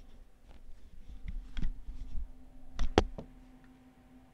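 Headphones bump and rustle close to a microphone.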